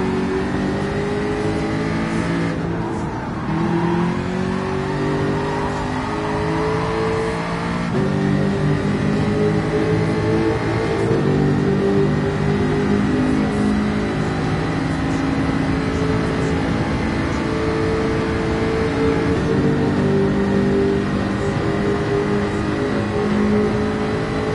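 A race car engine roars at high revs, its pitch rising and dropping with gear changes.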